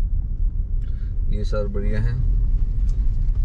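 A man speaks briefly from outside the car.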